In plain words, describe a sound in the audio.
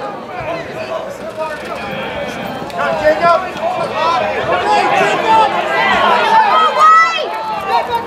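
A crowd of spectators cheers and shouts outdoors, growing louder.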